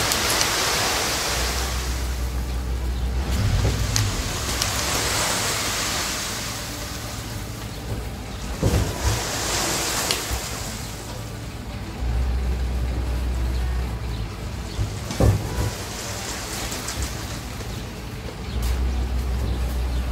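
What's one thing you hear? A truck engine idles with a low rumble.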